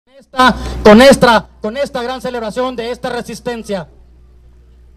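A man speaks loudly through a loudspeaker outdoors.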